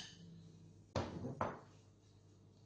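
A metal bowl knocks down onto a hard surface.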